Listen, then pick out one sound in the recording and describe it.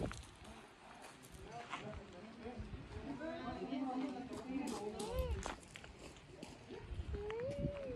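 A small child's footsteps crunch on gravel.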